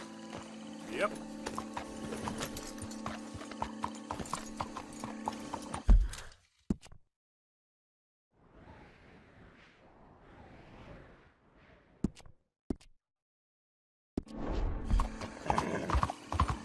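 A horse's hooves clop at a trot on a hard road.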